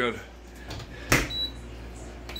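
A dishwasher door shuts with a thud.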